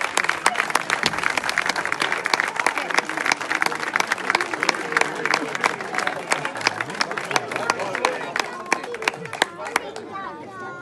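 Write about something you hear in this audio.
Castanets clack in a quick, lively dance rhythm.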